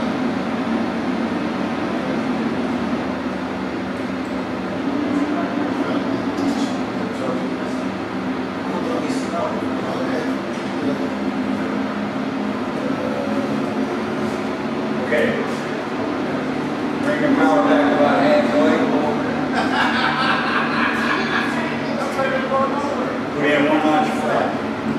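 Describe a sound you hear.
Children and adults chat and murmur nearby, with the talk getting louder toward the end.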